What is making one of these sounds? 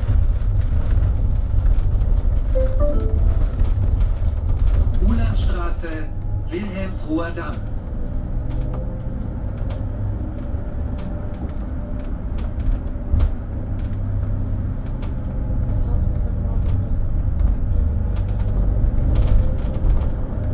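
A vehicle rumbles low and steady as it drives along.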